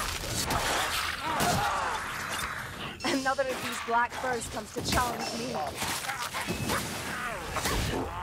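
Blades strike creatures with heavy, wet hits.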